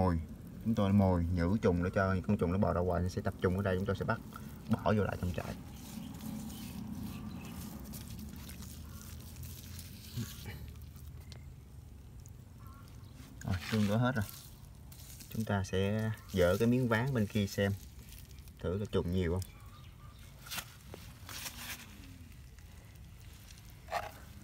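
Hands dig and rustle through loose, damp soil close by.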